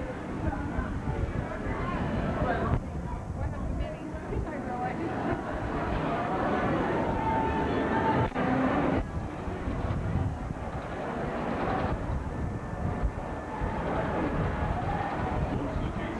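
A crowd of people chatters.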